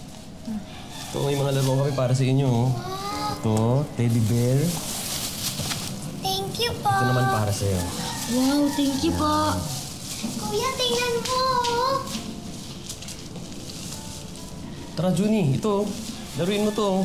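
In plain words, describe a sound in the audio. A woman speaks warmly nearby.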